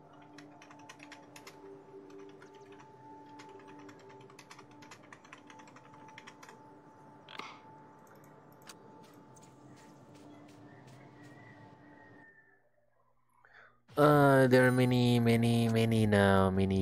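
Soft game music plays, then a loud bright melody swells in.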